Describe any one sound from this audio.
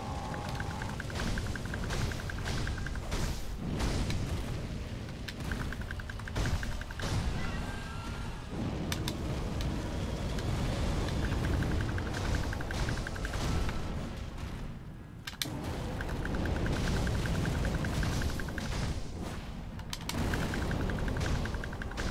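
Sword blows clash and strike sharply.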